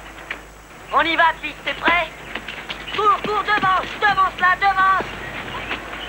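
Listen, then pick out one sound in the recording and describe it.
A young boy shouts loudly outdoors.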